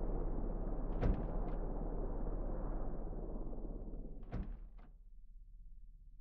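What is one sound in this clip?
A helicopter engine rumbles steadily, then winds down and fades.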